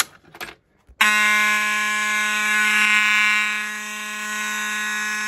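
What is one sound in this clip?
A fire alarm horn blares in one steady, loud tone.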